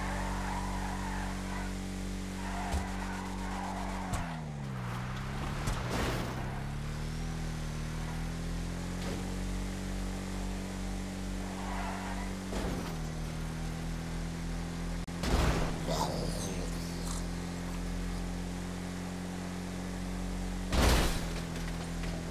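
An engine drones steadily, dipping in pitch as it shifts gear and rising again.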